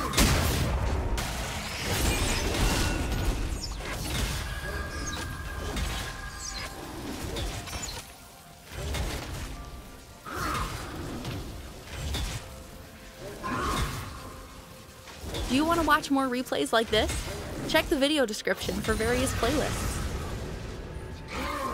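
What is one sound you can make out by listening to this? Magic spells whoosh and crackle in a video game fight.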